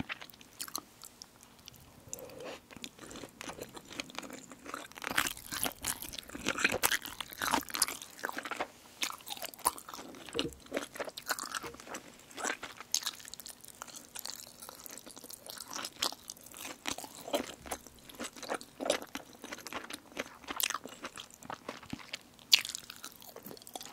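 A young woman slurps noodles close to a microphone.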